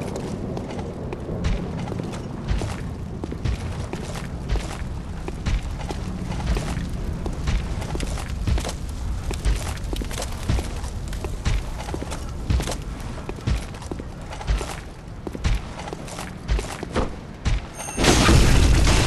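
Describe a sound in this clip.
Footsteps tread on cobblestones at a steady pace.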